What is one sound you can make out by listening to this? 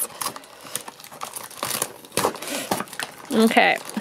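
Plastic packaging crinkles and rustles as hands tear it open.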